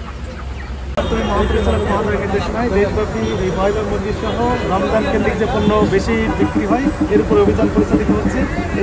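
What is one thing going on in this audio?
A man speaks calmly into microphones, close by.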